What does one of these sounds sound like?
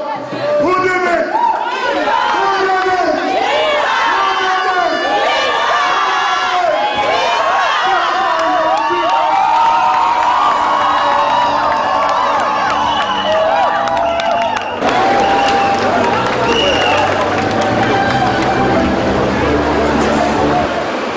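A crowd sings along together.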